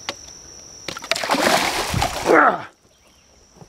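A fish splashes in shallow water.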